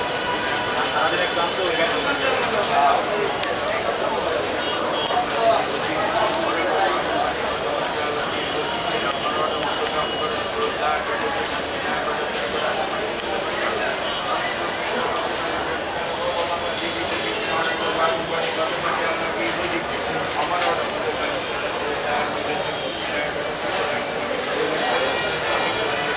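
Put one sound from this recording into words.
A train rolls slowly along the tracks.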